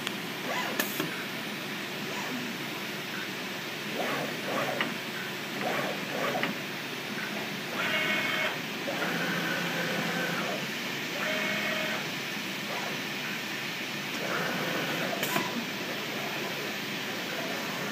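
A cutting machine whirs and hums steadily as its head moves back and forth.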